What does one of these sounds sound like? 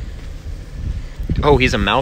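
Hands rustle through dry grass and plants.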